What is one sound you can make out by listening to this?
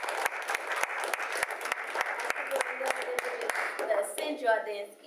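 A crowd claps and applauds in a room.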